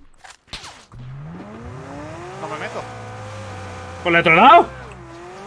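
A car engine starts and revs up.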